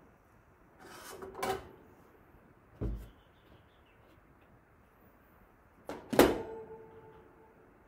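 A plastic colander clatters against a metal sink.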